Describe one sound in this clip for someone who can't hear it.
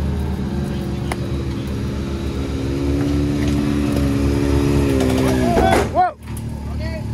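An electric winch motor whines steadily, then slows and stops.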